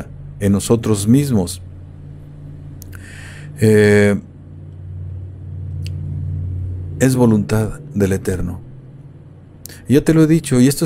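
An older man speaks calmly and close into a microphone, with pauses.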